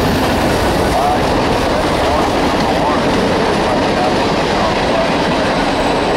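Metal wheels squeal faintly on the rails.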